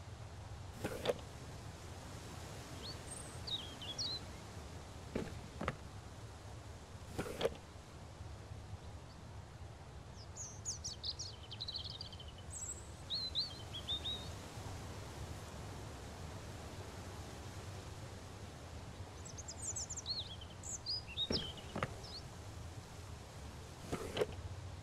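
A wooden cabinet drawer thumps open.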